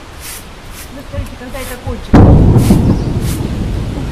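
A broom sweeps across pavement with rough scraping strokes.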